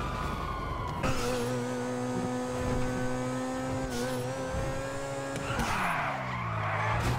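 A car engine hums steadily and revs.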